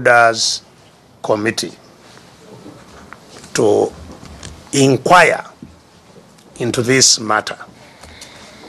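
An older man speaks forcefully in short bursts, with pauses between them.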